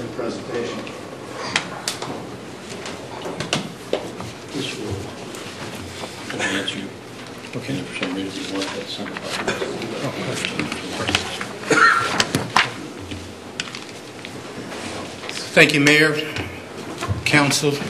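Men talk and murmur in a room with some echo.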